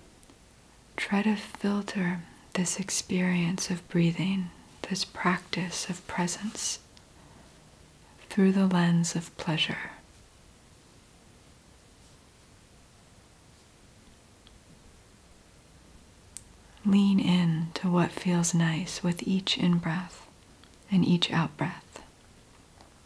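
A woman speaks calmly and close, pausing now and then.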